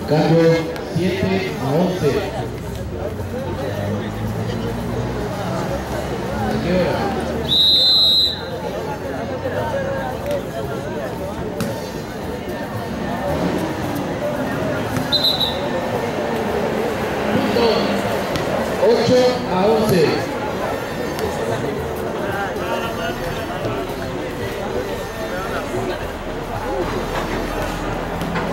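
A crowd of young men and women chatters and shouts outdoors.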